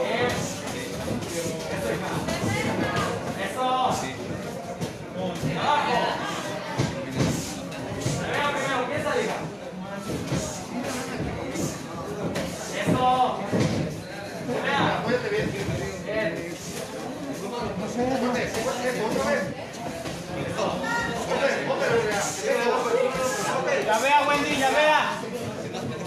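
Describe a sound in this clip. Boxing gloves thump and smack as two boxers trade punches.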